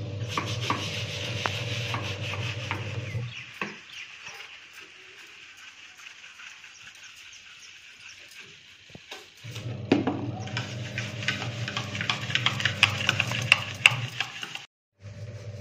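A stiff brush scrubs briskly against a sink and tiles.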